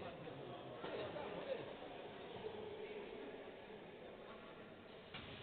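Several men talk quietly at a distance in a large echoing hall.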